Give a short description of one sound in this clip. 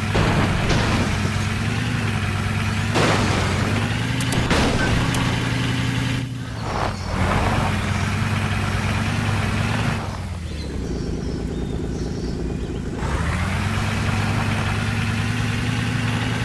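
An engine hums steadily and revs as an off-road vehicle drives.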